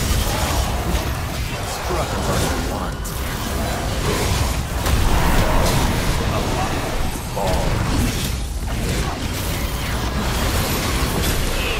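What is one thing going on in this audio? Sword slashes whoosh and clang in a fast fight.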